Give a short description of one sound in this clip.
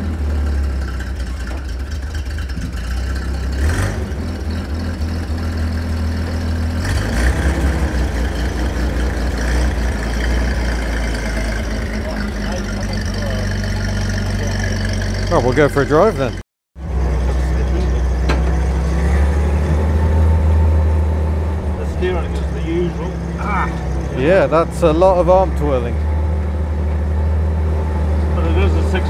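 An old truck engine rumbles steadily.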